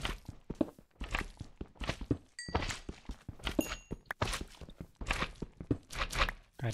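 A pickaxe chips at stone with quick, repeated knocks.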